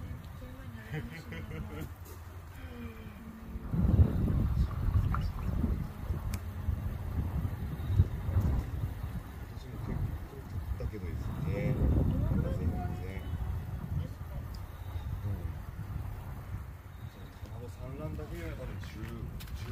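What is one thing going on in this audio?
Fish splash and slurp at the water's surface.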